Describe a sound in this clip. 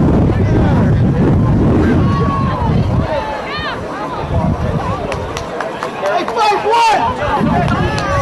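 A crowd of spectators and players shouts and cheers outdoors.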